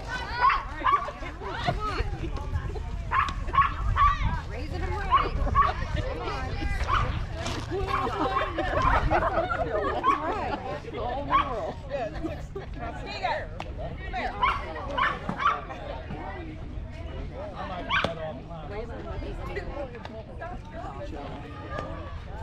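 Boys and men call out and chatter across an open field outdoors.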